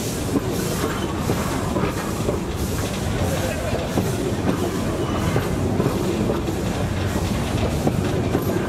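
A passenger train rumbles past close by.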